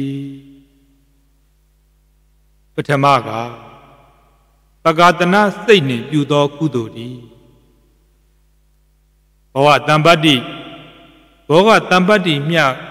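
A man speaks calmly into a microphone in a slow, chanting voice, with pauses between phrases.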